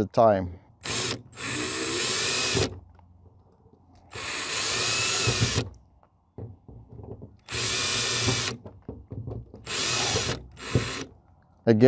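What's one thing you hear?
A cordless drill whirs in short bursts, driving a screw.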